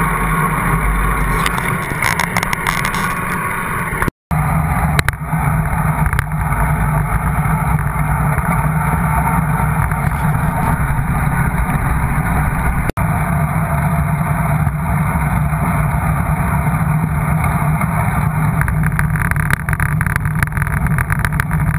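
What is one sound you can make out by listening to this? Wind rushes loudly past a cyclist riding fast.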